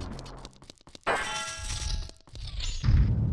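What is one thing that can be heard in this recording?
A heavy lock clanks open and chains rattle.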